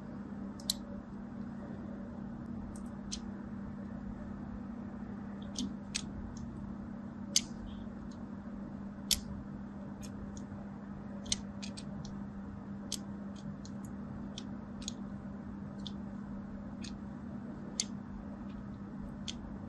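A thin blade slices into soft soap with crisp little cracks.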